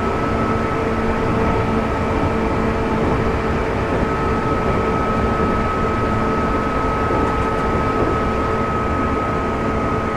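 A train rumbles steadily along the tracks with a constant electric motor whine.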